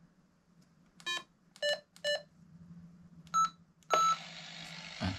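A handheld radio beeps several times.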